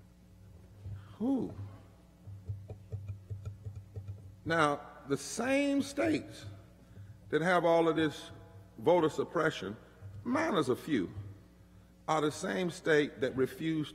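A man speaks slowly through a microphone and loudspeakers.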